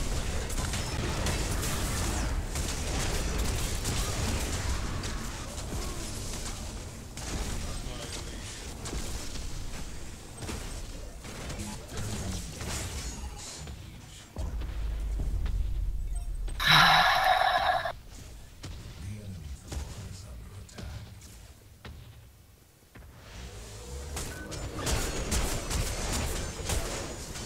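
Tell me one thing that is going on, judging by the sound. Weapons clash and strike in a game battle.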